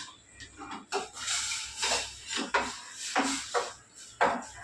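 Spices rattle as a woman pours them from a tin into a pot.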